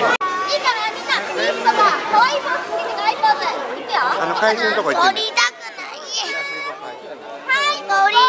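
A woman talks cheerfully to young children nearby.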